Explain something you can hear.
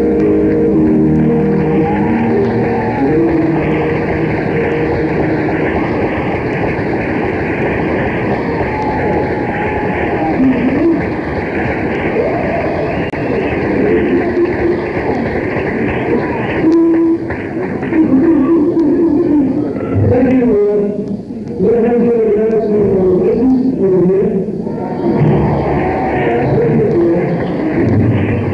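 A rock band plays electric guitars live.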